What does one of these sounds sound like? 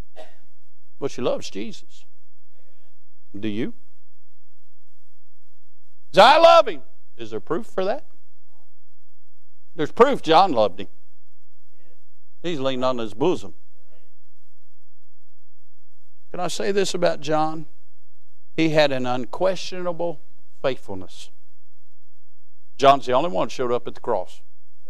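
A man preaches through a microphone in bursts with pauses between phrases.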